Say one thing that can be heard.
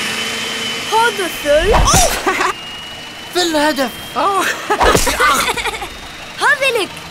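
A boy laughs and exclaims with delight.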